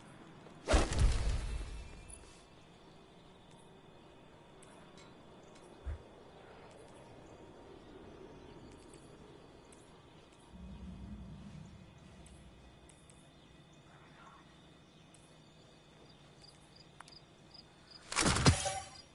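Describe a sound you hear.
Soft electronic clicks tick.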